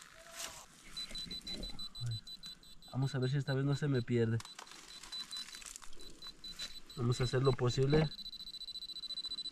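A trowel scrapes and digs into dry soil.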